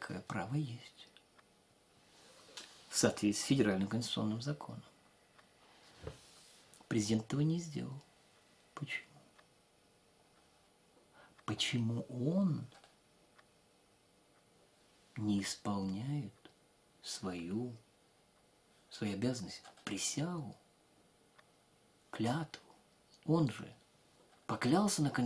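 An elderly man speaks close by, calmly and with pauses.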